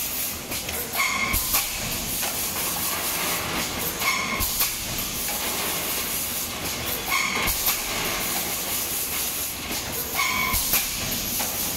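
Compressed air hisses in short bursts at a regular pace.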